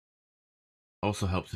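A man speaks loudly into a close microphone.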